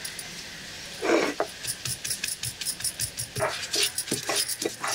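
A stone pestle knocks and grinds on a stone slab.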